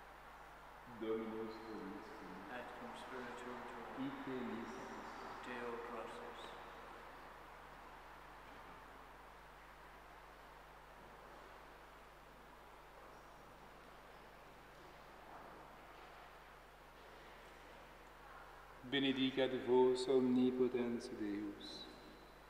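A man chants at a distance in a large echoing hall.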